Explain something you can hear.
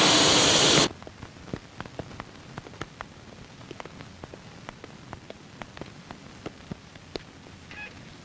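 Footsteps click steadily on a hard floor.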